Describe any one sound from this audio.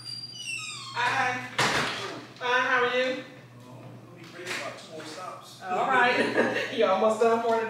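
A woman speaks at an open doorway.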